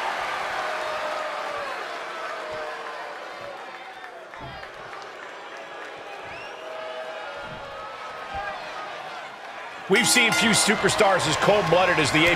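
A large crowd cheers and murmurs in a big echoing arena.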